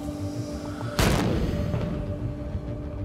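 A large gun fires with a deep, booming blast that rumbles away.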